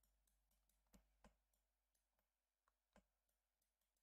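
Computer keys click softly now and then.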